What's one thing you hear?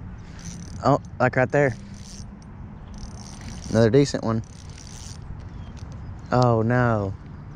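A fishing reel whirs as its handle is cranked.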